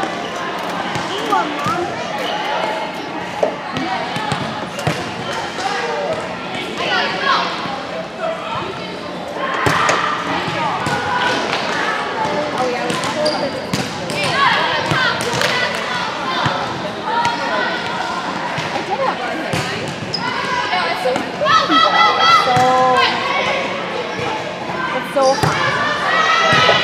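Young girls call out and shout to each other in a large echoing gym.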